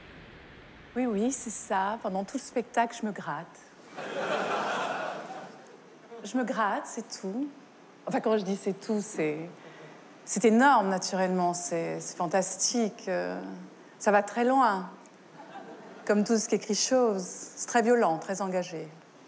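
A middle-aged woman speaks calmly and expressively through a microphone.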